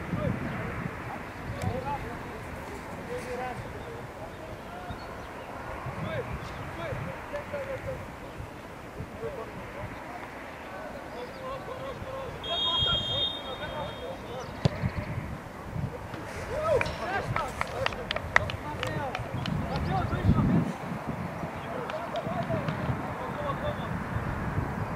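Teenage boys shout across an open football pitch.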